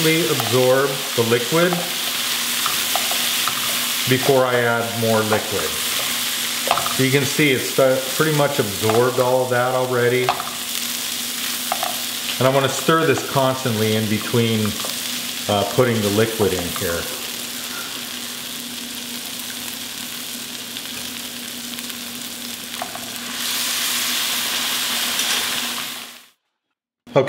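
Rice sizzles and crackles in a hot pan.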